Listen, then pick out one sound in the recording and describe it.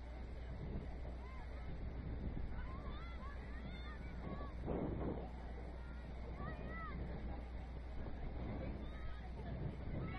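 Young players shout and call out faintly across a distant field.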